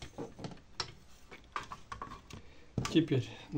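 Metal parts click and clatter as they are handled up close.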